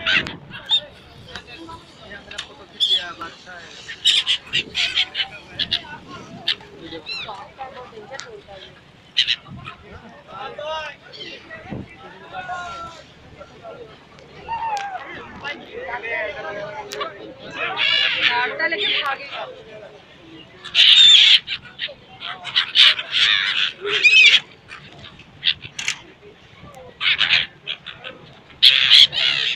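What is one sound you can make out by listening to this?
Gulls cry loudly and shrilly close by.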